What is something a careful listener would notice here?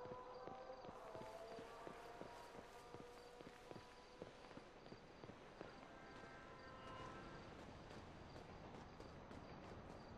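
Footsteps run quickly over dirt and grass.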